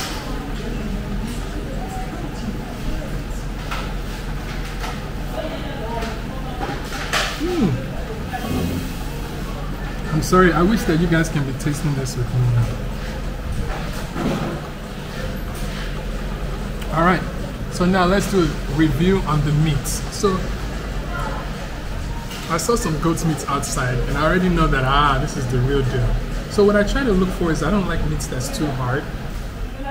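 Fingers squelch in soft food in a bowl.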